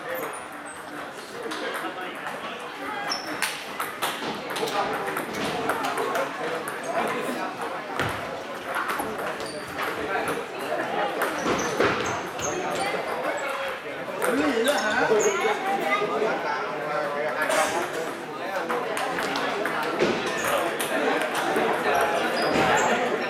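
Ping-pong balls click sharply off paddles and tables in an echoing hall.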